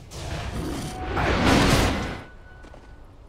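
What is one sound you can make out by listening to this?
A loud magical blast swells and booms.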